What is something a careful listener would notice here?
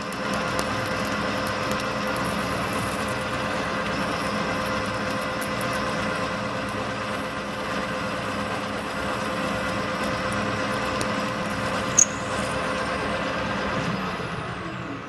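A drill bit grinds and scrapes into spinning metal.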